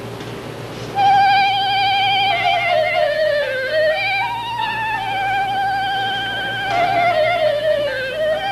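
A boy plays a slow melody on a clarinet.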